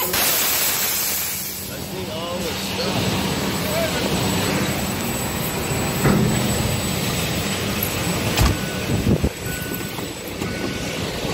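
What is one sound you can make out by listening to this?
A large truck's diesel engine idles with a steady low rumble.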